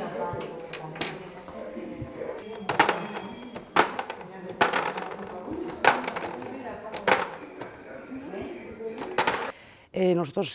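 Plastic pegs click sharply against a plastic tray.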